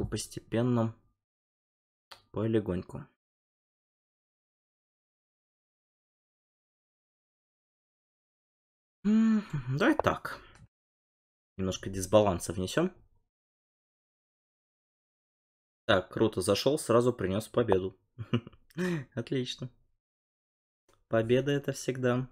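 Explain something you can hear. A man speaks calmly and close into a microphone, in short bursts with pauses.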